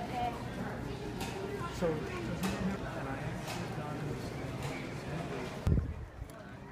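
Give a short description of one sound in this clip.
Many people chatter in a busy indoor crowd.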